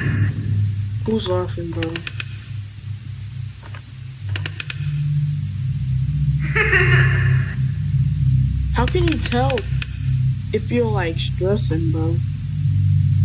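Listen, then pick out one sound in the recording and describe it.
A young man speaks quietly and close by.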